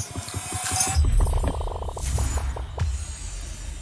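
A sparkling game sound effect plays as an egg bursts open.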